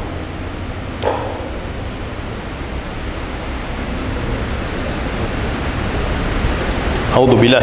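A middle-aged man speaks calmly into a microphone over a loudspeaker.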